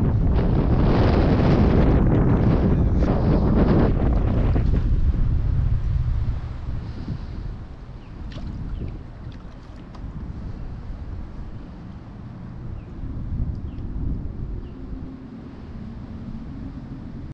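Strong wind buffets outdoors with a loud low rumble.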